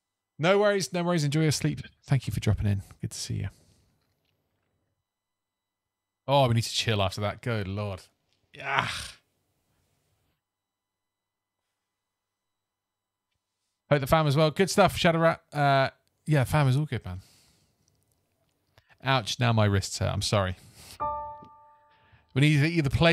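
A man talks calmly and closely into a microphone, pausing between phrases.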